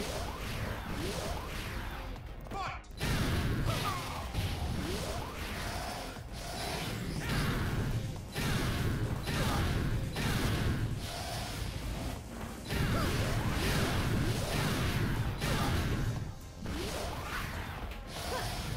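Fighting game hits land with sharp whooshes and thuds.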